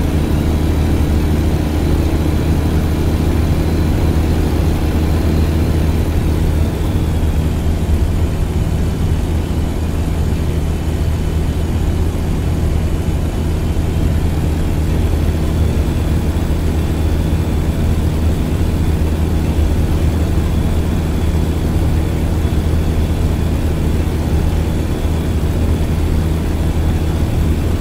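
A truck's diesel engine drones steadily at cruising speed.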